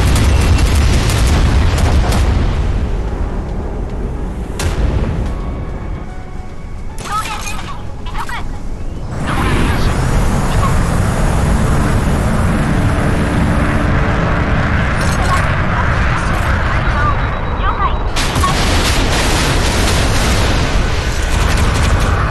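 Jet engines roar loudly and steadily.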